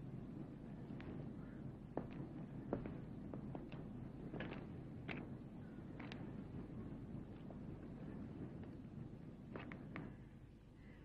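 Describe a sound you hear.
Footsteps scuff on wet pavement outdoors.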